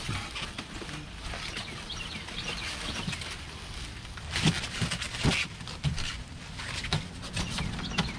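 Plastic wrapping crinkles loudly.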